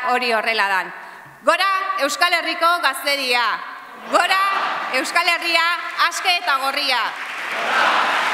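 A man shouts energetically into a microphone in a large echoing hall.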